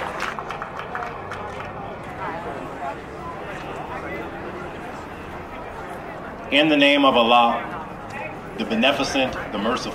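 A man speaks with animation into a microphone, heard through loudspeakers outdoors.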